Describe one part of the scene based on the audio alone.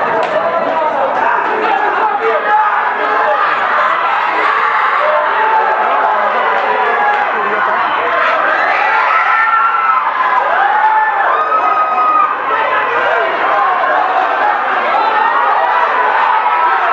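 A large crowd shouts and cheers loudly all around.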